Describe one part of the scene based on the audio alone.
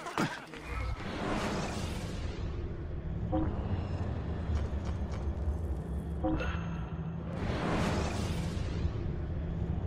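A soft whoosh sweeps past.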